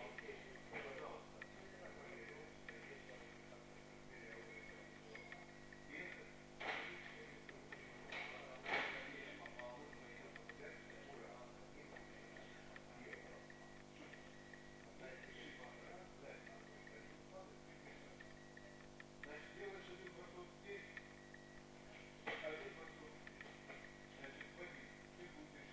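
An elderly man speaks calmly in an echoing hall.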